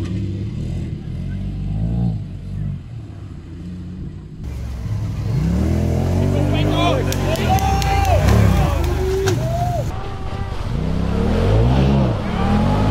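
An off-road engine revs hard, rising and falling in pitch.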